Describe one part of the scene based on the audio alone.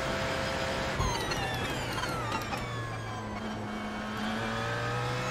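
A racing car engine drops sharply in pitch as the car brakes and shifts down.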